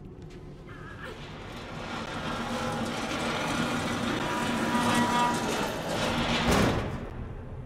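A metal cart rolls and rattles across a hard floor.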